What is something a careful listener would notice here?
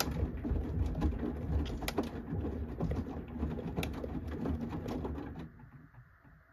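Wet laundry tumbles and sloshes inside a washing machine drum.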